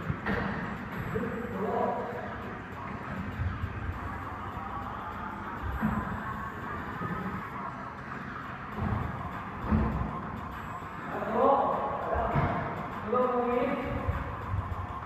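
A man talks in a large echoing hall.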